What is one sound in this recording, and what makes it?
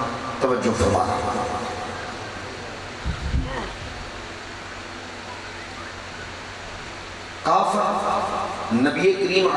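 A man speaks with feeling into a microphone, his voice echoing through loudspeakers.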